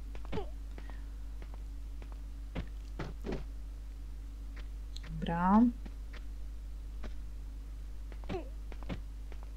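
Boots land with short thuds on stone.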